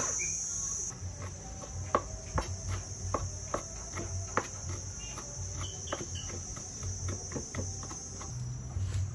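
A knife chops meat on a wooden board with quick, sharp knocks.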